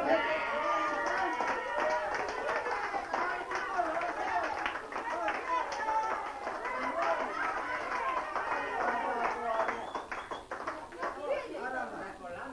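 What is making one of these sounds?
People clap their hands in rhythm.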